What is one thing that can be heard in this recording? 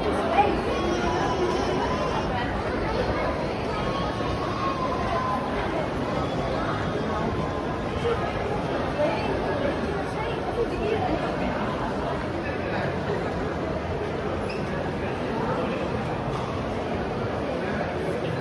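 A crowd of people chatters in a large, echoing indoor hall.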